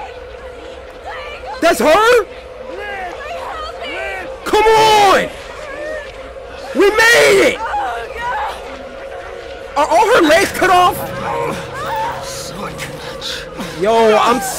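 A young man talks and exclaims loudly into a close microphone.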